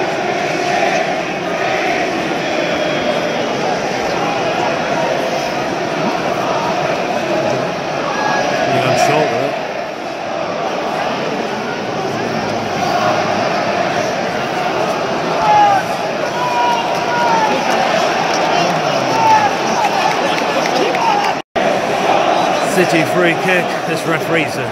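A large stadium crowd roars and murmurs.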